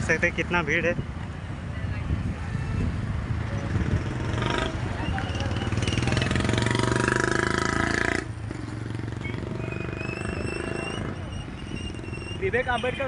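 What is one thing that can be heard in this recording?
Motorcycle engines hum and rumble as traffic passes close by.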